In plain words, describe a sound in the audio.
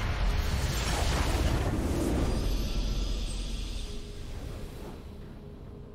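A game's base blows up with a loud crumbling blast that slowly fades.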